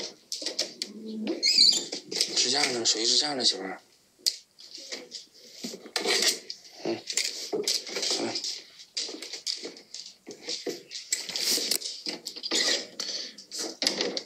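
A door handle turns and clicks.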